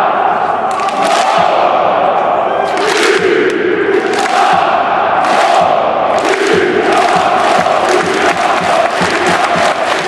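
A huge crowd of fans chants and sings in unison in a large open stadium.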